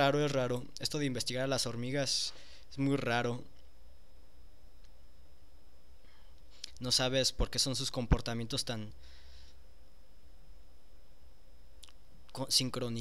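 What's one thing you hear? A young man talks calmly and close by, heard through a computer microphone.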